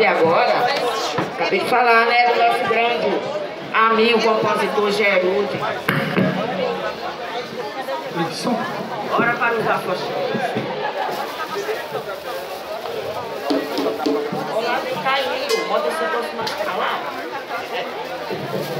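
A crowd of people chatter nearby, outdoors.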